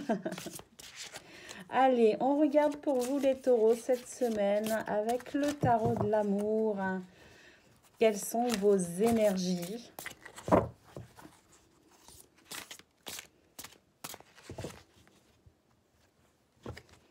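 Cards shuffle and flick softly close by.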